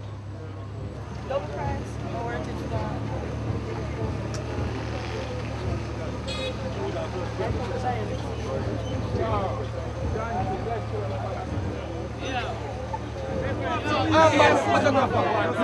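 A crowd of people chatters and shouts nearby.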